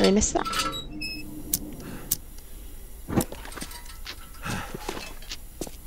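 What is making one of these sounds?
A lantern flame hisses softly.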